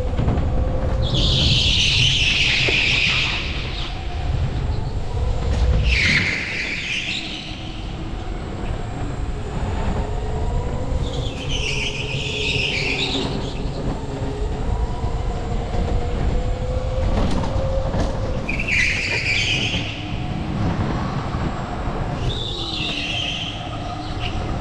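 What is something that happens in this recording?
Kart tyres squeal through the corners.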